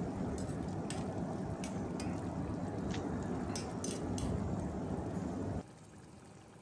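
A thick stew bubbles and simmers in a pot.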